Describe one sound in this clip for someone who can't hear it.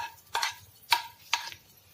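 Hot oil sizzles briefly as it is poured into a pot.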